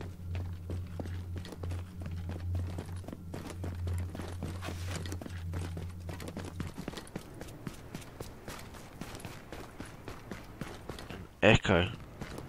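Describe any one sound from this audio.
Footsteps tread steadily.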